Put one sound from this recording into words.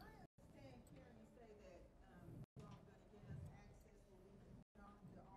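A woman speaks to an audience through a microphone in a large room.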